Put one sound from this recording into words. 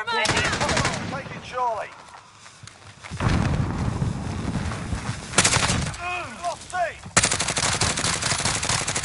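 A rifle fires in rapid bursts, with loud sharp cracks.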